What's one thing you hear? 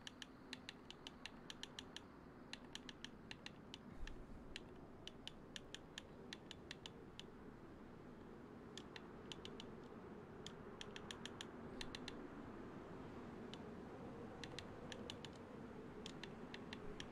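Short, sharp interface clicks tick in quick bursts.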